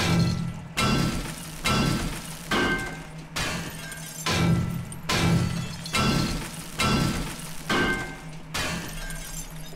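A pickaxe strikes a metal sheet again and again in a steady rhythm.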